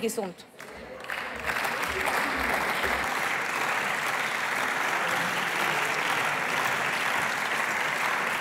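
A crowd applauds steadily.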